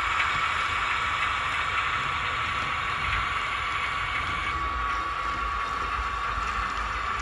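A model diesel shunting locomotive's engine sound plays from a small built-in speaker.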